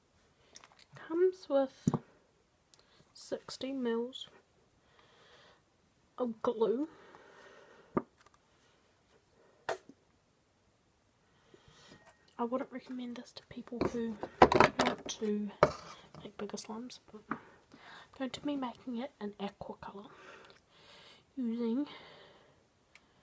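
A young woman talks calmly and close by, now and then.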